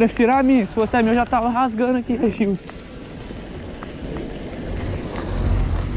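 Bicycle tyres roll over a bumpy dirt road.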